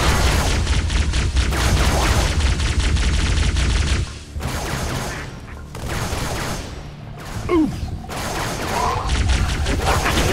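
Energy weapons fire in rapid, buzzing bursts.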